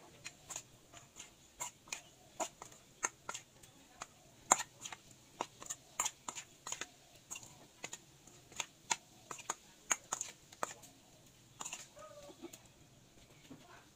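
Wet meat squelches as a hand mixes it in a metal bowl.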